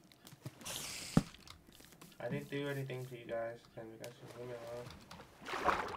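Water splashes as a game character swims.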